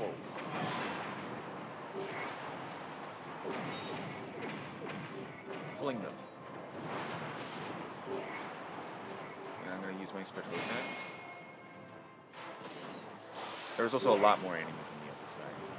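Game explosions boom and crackle.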